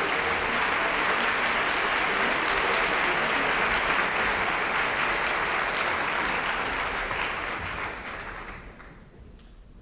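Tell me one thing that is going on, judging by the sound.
An audience applauds loudly in a large hall, then the applause fades away.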